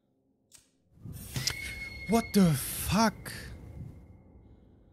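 A young girl screams shrilly.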